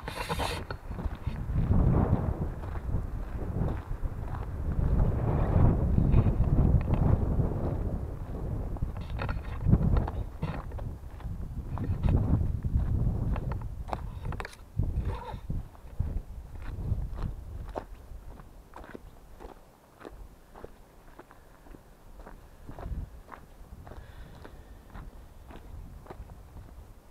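Wind rumbles loudly across a close microphone outdoors.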